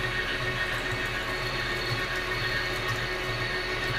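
A drill bit grinds into spinning metal.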